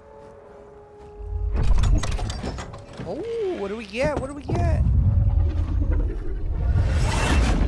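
A heavy chest lid creaks and thuds open.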